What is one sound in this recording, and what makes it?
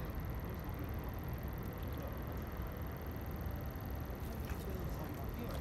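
Water laps gently against a hard surface outdoors in light wind.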